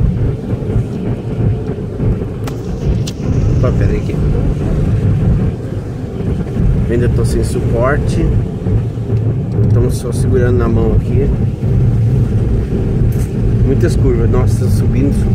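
Tyres roll over a wet road.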